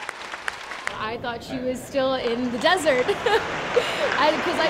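A young woman speaks happily and laughs close by.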